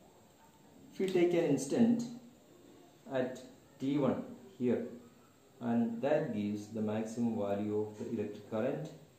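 A man speaks calmly, explaining as he lectures, close by.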